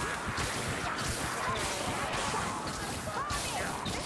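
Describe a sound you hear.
A fire bursts with a roaring whoosh.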